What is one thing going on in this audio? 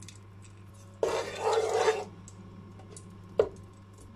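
A wooden spatula scrapes against a metal pan.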